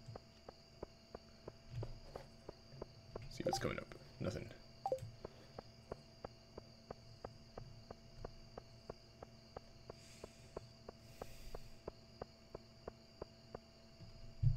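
Footsteps tap quickly and steadily on stone.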